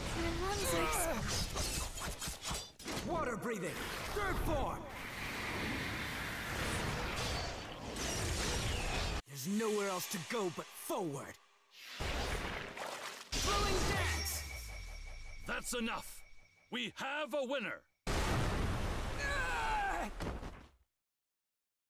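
Sword slashes whoosh and crash.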